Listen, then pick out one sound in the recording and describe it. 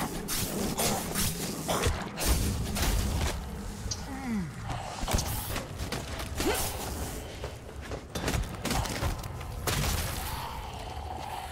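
Heavy blows thud and squelch against flesh.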